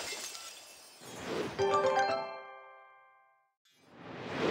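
A bright magical chime rings out and fades.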